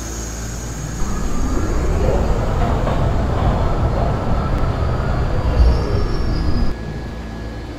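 A subway train rumbles in along the tracks and slows to a stop.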